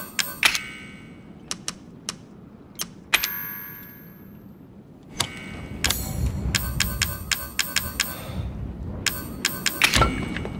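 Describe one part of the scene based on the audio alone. Menu clicks sound sharply.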